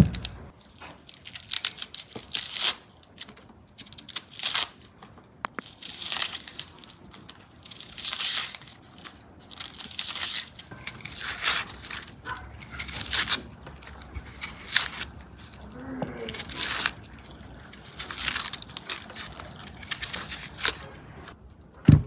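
A knife scrapes and rasps as it peels an onion.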